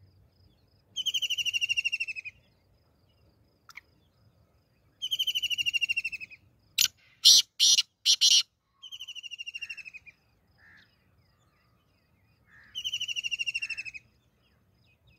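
A caged bird gives loud, rapid trilling calls again and again.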